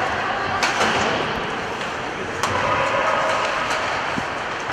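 Sticks clack against the puck and ice.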